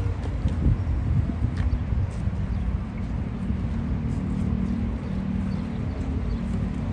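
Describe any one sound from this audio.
Boots strike stone in slow, measured steps.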